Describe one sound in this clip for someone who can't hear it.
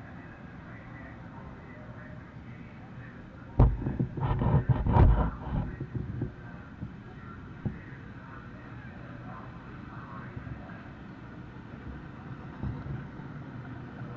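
Race cars roar around a dirt track in the distance.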